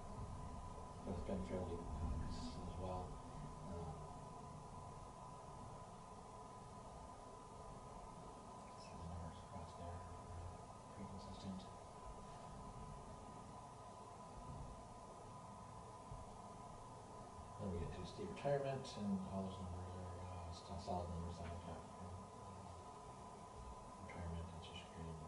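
A man speaks calmly at a distance.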